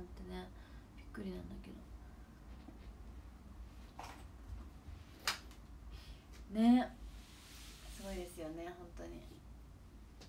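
A young woman speaks softly in short bursts, close by.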